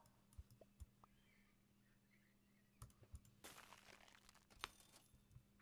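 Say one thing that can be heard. A video game makes short clicking sound effects.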